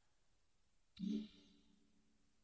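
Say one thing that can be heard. A soft electronic chime sounds once as an option is confirmed.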